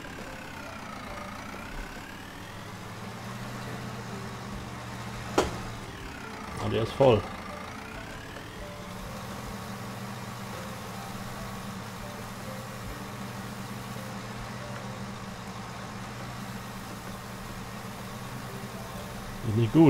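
A loader engine hums steadily.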